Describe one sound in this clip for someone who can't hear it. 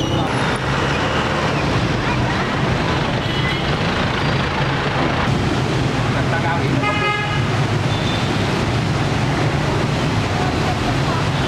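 A crowd of men talk at once nearby, outdoors.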